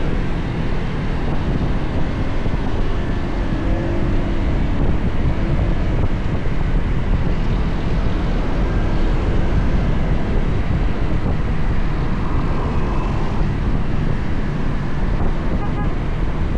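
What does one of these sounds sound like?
Wind rushes loudly past a moving motorbike.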